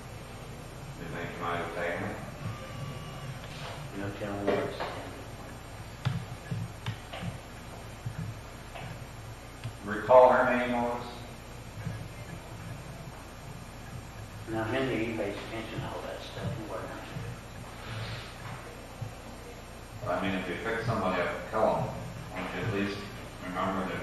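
A middle-aged man speaks calmly, with pauses between phrases.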